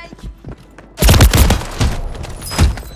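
Loud explosions boom from a video game.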